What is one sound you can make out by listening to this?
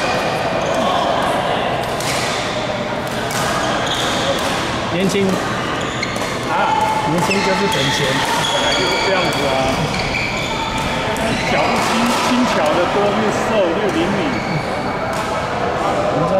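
Young men call out and chatter in the hall.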